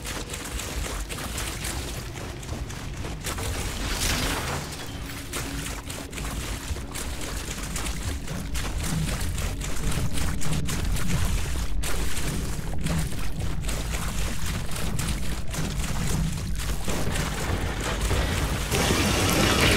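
Footsteps run quickly through grass and shallow water.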